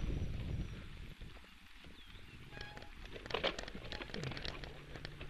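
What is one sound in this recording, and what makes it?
Bicycle tyres roll and rattle over a bumpy dirt trail.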